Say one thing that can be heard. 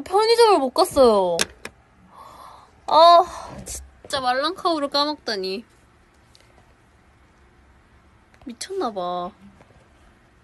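A young woman talks animatedly, close to a phone microphone.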